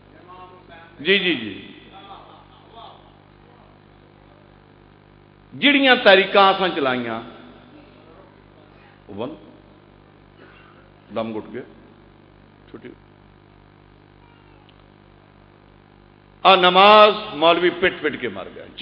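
A man speaks forcefully into a microphone through loudspeakers, in bursts with pauses.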